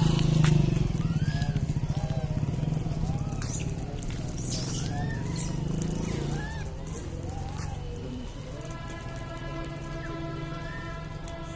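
Footsteps crunch on dry dirt and gravel outdoors.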